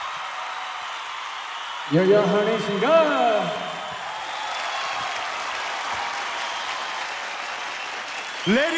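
A large crowd cheers and applauds in a big hall.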